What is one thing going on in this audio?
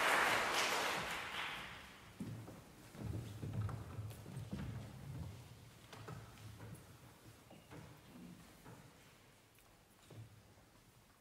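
Performers shuffle and settle onto chairs on a stage.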